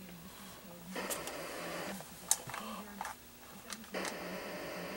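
Electronic video game sounds play from a small speaker.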